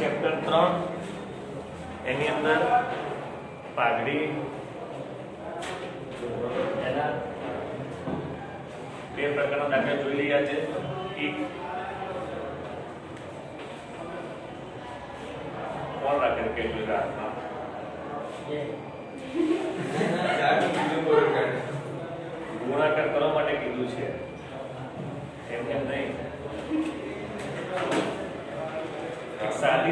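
A middle-aged man speaks calmly, as if teaching, in a room with a slight echo.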